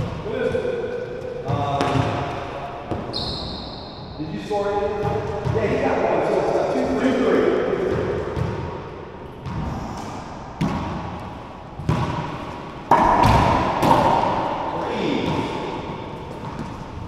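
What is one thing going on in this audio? A man calls out loudly nearby, his voice echoing.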